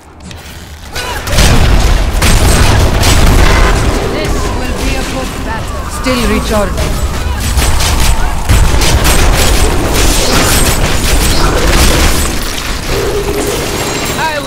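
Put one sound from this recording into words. Magic spells crackle and burst rapidly.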